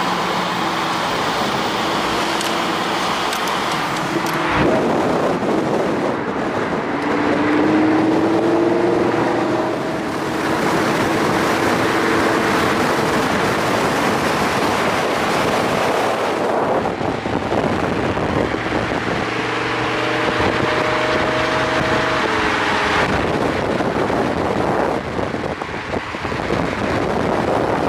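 A sports car engine roars and revs nearby.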